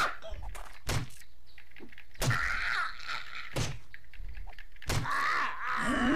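A wooden club thuds against a zombie's body.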